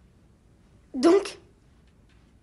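A boy speaks briefly.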